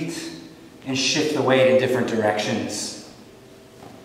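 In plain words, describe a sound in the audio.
A man speaks calmly and clearly into a close microphone.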